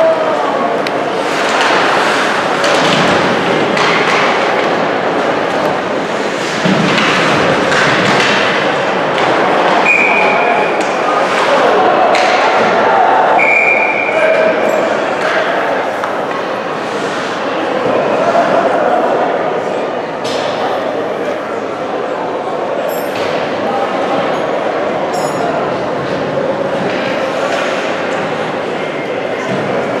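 A crowd cheers and chatters in a large echoing rink.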